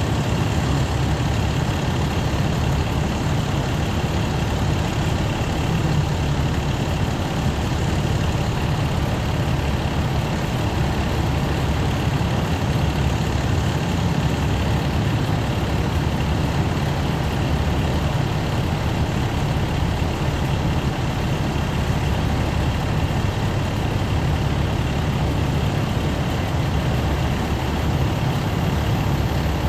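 A fire burns with a steady low roar.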